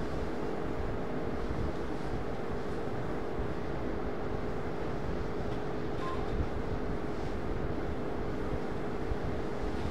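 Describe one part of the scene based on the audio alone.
A cloth duster rubs across a whiteboard.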